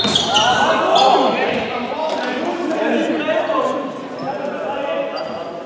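Sports shoes squeak on a hard court floor.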